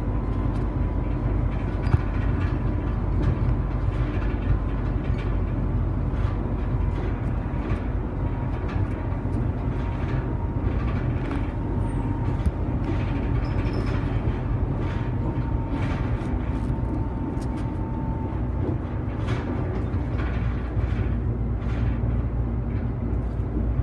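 The bus body rattles and knocks over a bumpy road.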